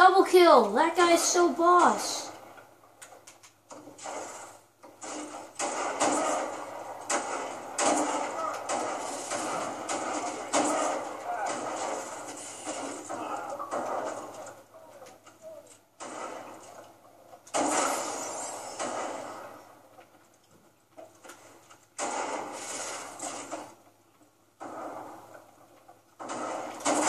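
Rifle shots crack and echo from a video game, heard through a television in a room.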